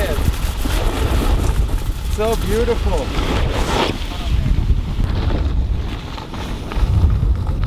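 A snowboard scrapes and hisses over packed snow.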